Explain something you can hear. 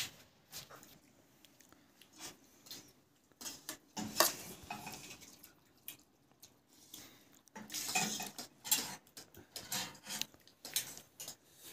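Spoons scrape and clink on metal plates.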